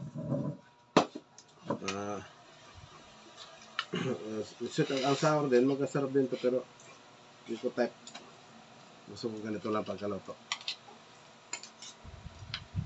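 A metal spoon clinks against a ceramic plate.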